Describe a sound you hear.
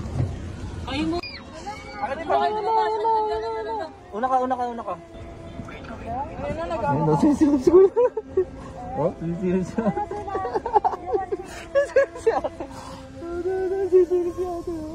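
A woman talks excitedly close by.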